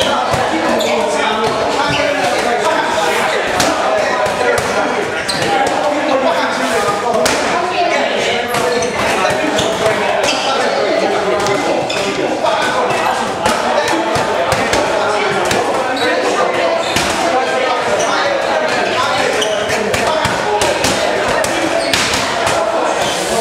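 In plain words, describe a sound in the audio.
Boxing gloves thud against padded mitts in quick bursts.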